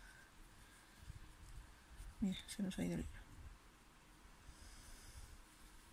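Yarn rustles softly as it is pulled through knitted stitches.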